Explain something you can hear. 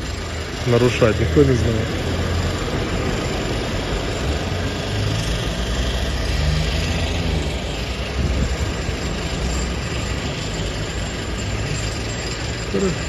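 Cars rumble past on a street.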